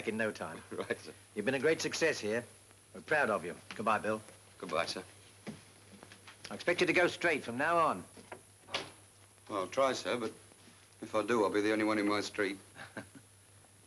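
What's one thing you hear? A middle-aged man speaks warmly and cheerfully.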